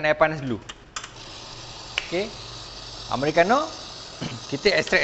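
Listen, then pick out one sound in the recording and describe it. A coffee machine hums and hisses as it brews.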